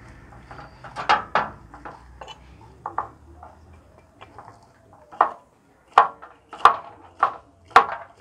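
A cleaver chops through spring onions on a wooden board with sharp knocks.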